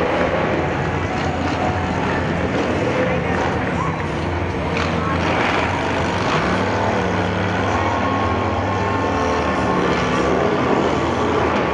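A large outdoor crowd cheers and chatters.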